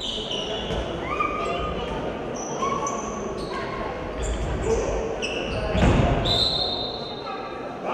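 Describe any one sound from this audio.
A crowd of spectators murmurs in the background.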